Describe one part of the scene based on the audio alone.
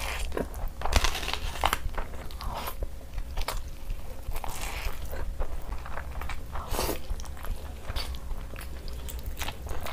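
Food squelches as fingers squeeze it.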